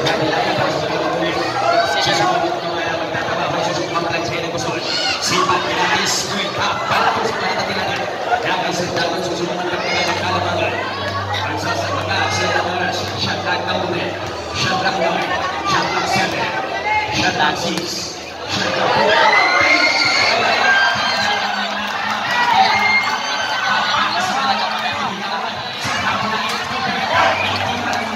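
A large crowd chatters and cheers in an echoing hall.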